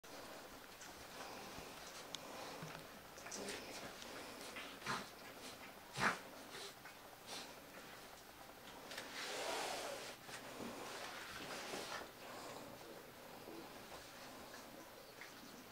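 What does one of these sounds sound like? Puppies scuffle and tumble on a soft blanket.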